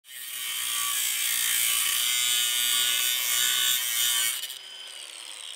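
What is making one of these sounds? An angle grinder whines loudly as it cuts through metal.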